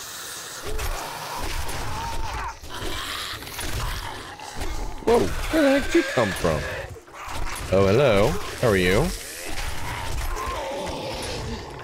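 Blades slash and stab into flesh with wet thuds.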